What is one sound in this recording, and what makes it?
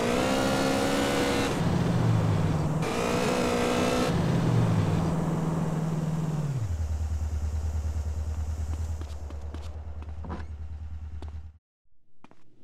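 A motorcycle engine revs loudly, then idles.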